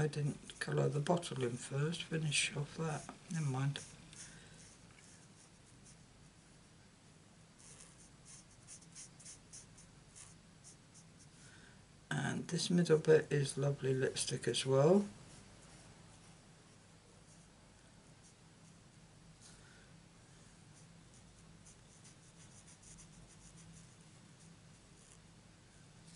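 A brush-tip marker scratches softly on card stock.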